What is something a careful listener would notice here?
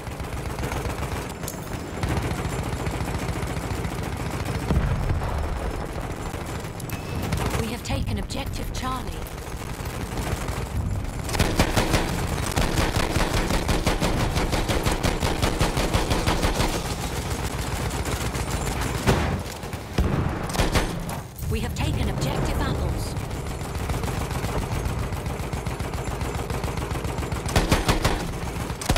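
An armored train rumbles along rails.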